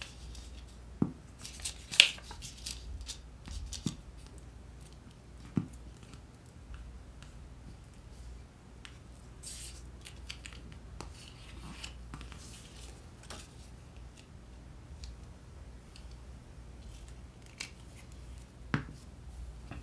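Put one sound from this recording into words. A glue stick cap clicks on and off.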